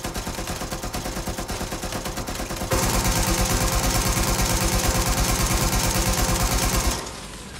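A mounted machine gun fires in a rapid, steady stream.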